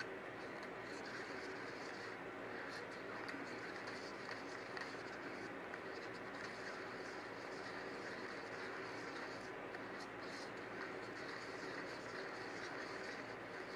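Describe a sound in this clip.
A stick stirs liquid in a small cup, scraping softly against its sides.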